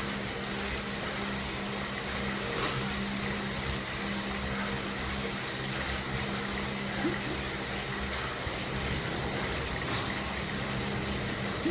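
An indoor bike trainer whirs steadily with a pulsing low hum as a man pedals.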